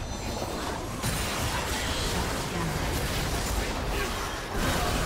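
Spell effects crackle and whoosh in a busy game fight.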